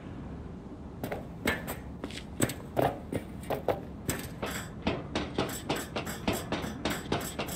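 Hands and feet clank on metal ladder rungs in a quick, steady rhythm.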